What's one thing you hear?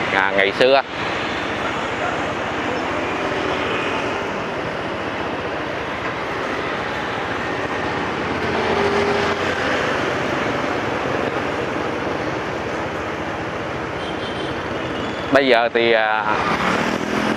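Motorbikes and cars hum steadily along a busy street outdoors.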